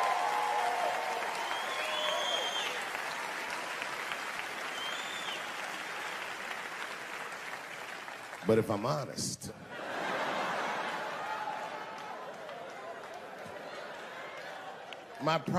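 An audience laughs and applauds in a large hall.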